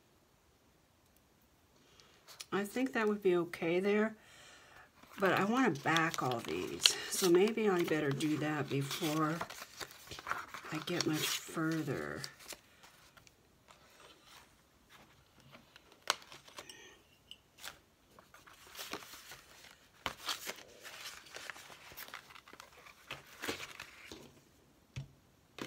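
Paper pages rustle and flip as they are handled.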